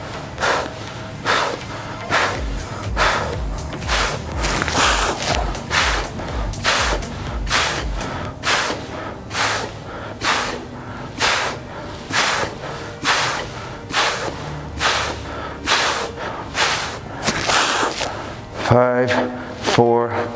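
A man breathes out hard with each sit-up.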